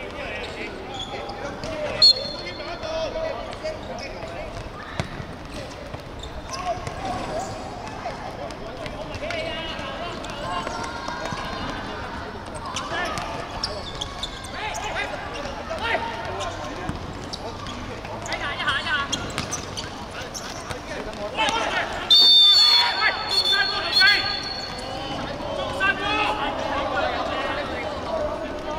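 Young players shout and call to each other across an open court.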